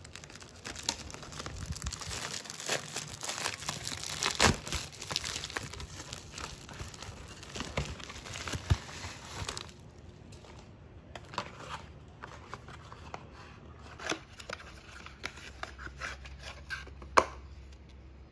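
Cardboard boxes rustle and tap as they are handled.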